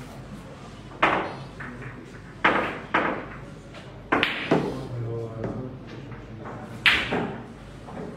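Billiard balls click sharply against each other and the cushions.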